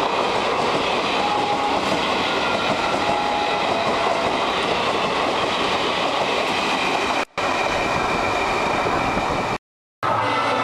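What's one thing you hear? A passenger train rumbles and clatters past on the tracks.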